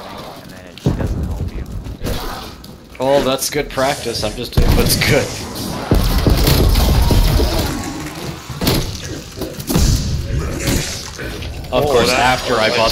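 Gunshots boom in heavy bursts.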